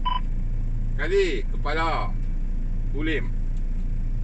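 A man speaks into a two-way radio.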